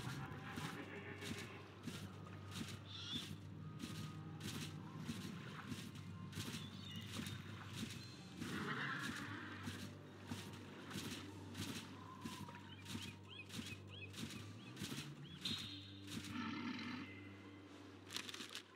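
A game character's footsteps tap steadily across the ground.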